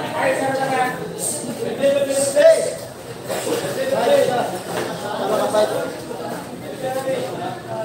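A crowd of young men and boys chatters nearby.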